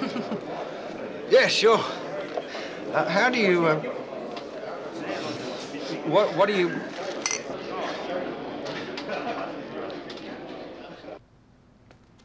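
A crowd of people chat and murmur nearby.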